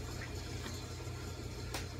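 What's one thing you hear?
A utensil clinks against a ceramic dish.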